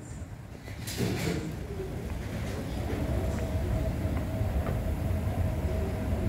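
An escalator hums and rumbles steadily close by.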